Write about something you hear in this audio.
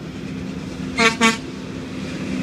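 A truck horn blasts twice.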